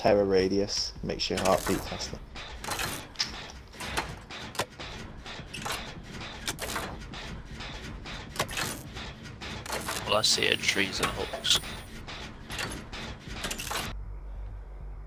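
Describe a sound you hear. Metal parts click and clatter as a machine is worked on.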